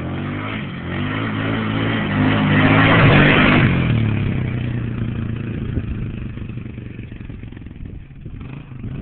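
An ATV engine roars loudly as it speeds past close by, then fades into the distance.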